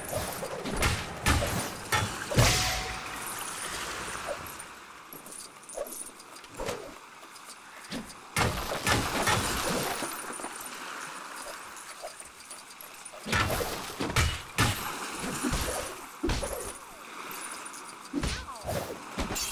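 Sharp hits and smashes burst out during a fight.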